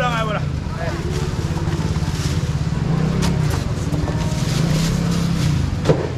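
Men and women chatter nearby in a busy crowd.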